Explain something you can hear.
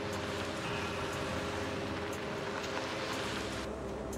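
Tyres roll over wet pavement.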